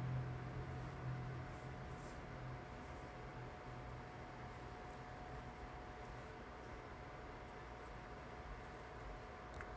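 A young woman speaks quietly and close to a phone microphone.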